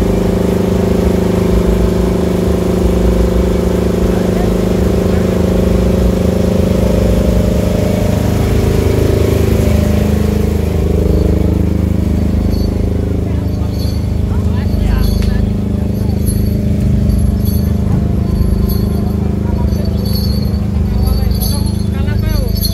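Loud music with heavy bass booms from large loudspeakers outdoors.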